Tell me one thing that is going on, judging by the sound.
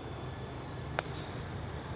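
A golf club sharply strikes a ball.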